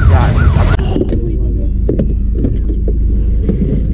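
A seatbelt slides and clicks.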